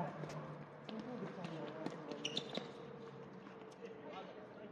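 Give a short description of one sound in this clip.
Tennis rackets strike a ball back and forth outdoors.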